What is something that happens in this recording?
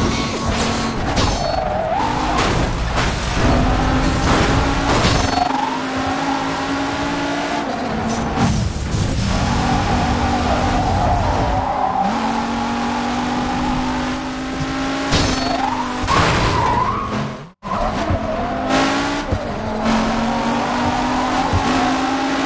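A car's tyres screech through a turn.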